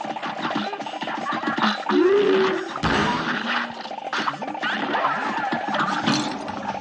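Cartoon video game shots pop and crackle rapidly.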